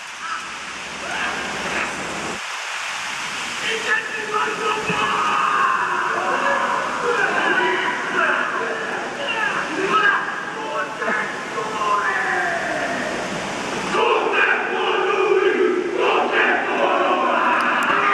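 A team of men chants and shouts in unison in a large open stadium.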